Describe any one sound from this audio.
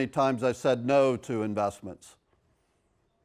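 A middle-aged man speaks with animation through a clip-on microphone.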